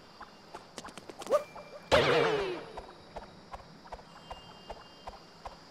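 Small footsteps patter quickly and evenly.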